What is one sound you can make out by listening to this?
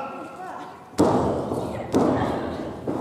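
Loud slaps ring out as wrestlers strike each other.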